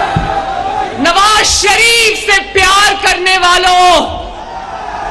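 A woman shouts passionately into a microphone over loudspeakers.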